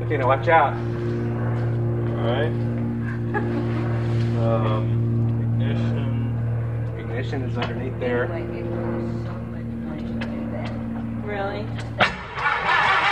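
A small plane's engine idles with a steady low drone.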